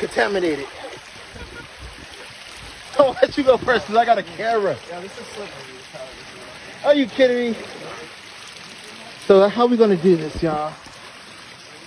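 A young man talks casually nearby.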